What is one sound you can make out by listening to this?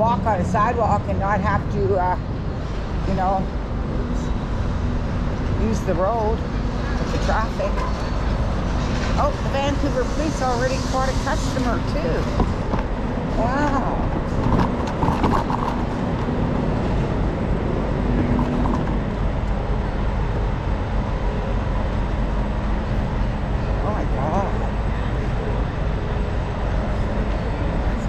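City traffic rumbles steadily in the background outdoors.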